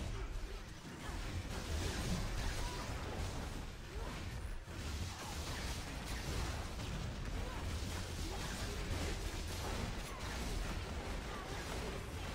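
Video game combat sound effects of blows and magic blasts clash without pause.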